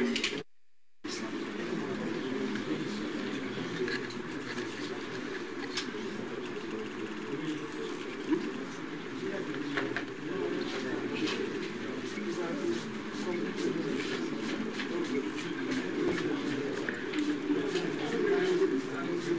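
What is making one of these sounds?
A man speaks in a low, subdued voice close by.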